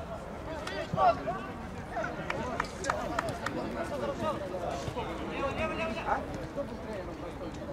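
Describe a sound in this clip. A football thuds off a player's foot.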